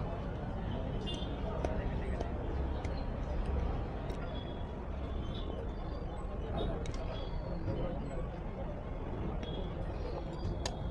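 A thin metal plate rattles and clicks as it is handled.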